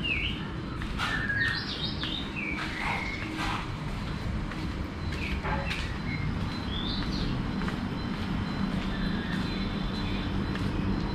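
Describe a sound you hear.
Footsteps scuff along a concrete path.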